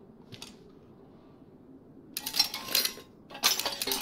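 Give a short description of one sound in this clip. A heavy metal trap clanks as it is set down on a hard floor.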